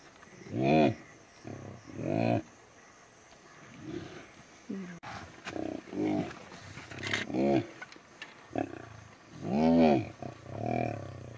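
Lions growl and snarl in deep, rumbling bursts.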